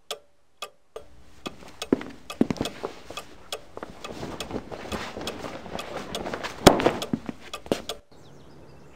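A heavy coat rustles and swishes as a man pulls it on.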